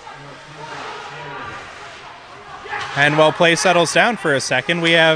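Spectators murmur in a large echoing rink.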